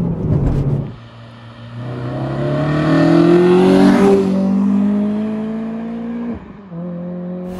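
A car accelerates and roars past on a road outdoors.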